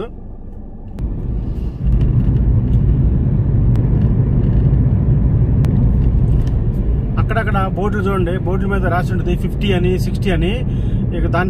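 Tyres rumble steadily on a road.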